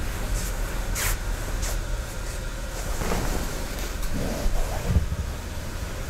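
Bare feet shuffle softly across straw mats.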